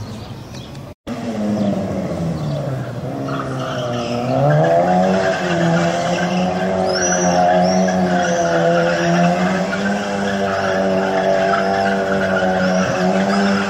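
A small car engine revs up and down close by.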